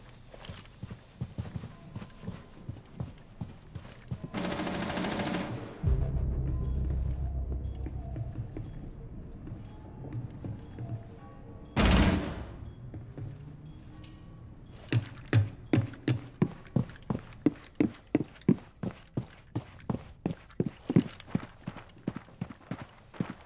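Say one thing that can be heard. Footsteps thud quickly across hard floors and stairs.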